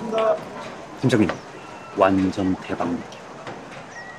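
A young man speaks quietly.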